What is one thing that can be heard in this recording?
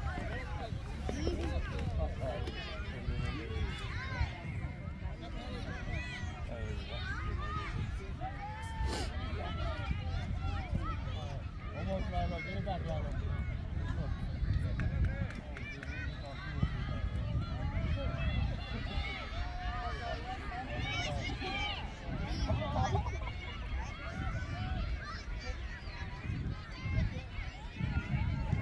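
Many voices of children and adults shout and call out across an open field outdoors.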